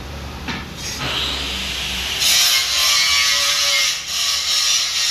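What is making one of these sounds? A metal cutting tool scrapes and screeches against a spinning workpiece.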